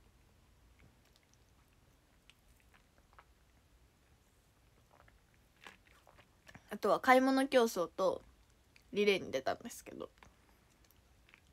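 A young woman sips through a straw with soft slurping sounds.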